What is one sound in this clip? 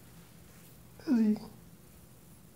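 A cat meows once, briefly.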